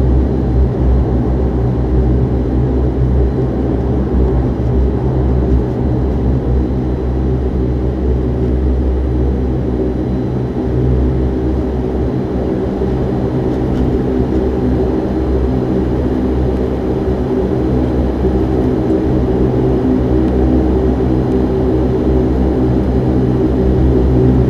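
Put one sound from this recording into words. Jet engines roar steadily from inside an aircraft cabin as it taxis.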